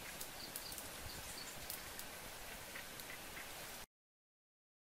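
A wood fire crackles nearby.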